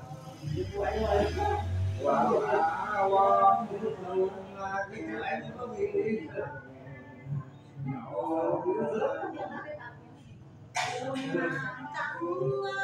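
A woman sings softly nearby.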